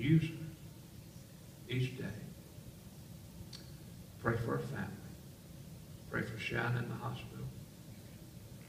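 An elderly man speaks calmly in short phrases, in a large echoing room.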